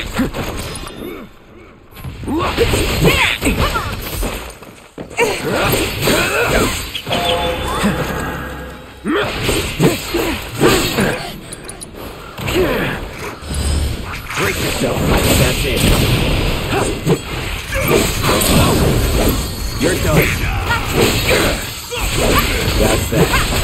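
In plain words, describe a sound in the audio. A sword slashes and clangs against monsters in rapid, clashing blows.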